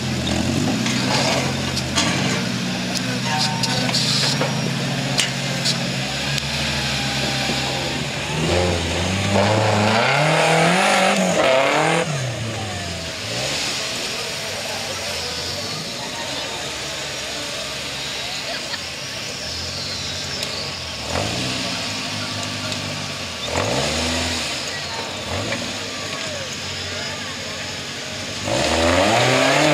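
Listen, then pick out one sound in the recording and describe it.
An off-road buggy engine rumbles and revs hard as it climbs over rocks.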